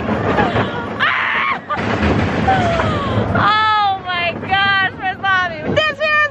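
A young woman shrieks and squeals close by.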